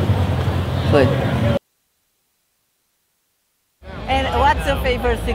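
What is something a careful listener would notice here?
A young woman speaks close to a microphone.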